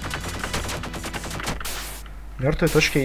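Quick electronic game sound effects crackle and burst.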